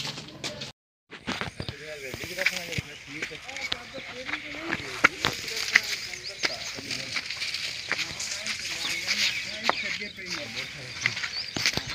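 Footsteps scuff along a dirt path.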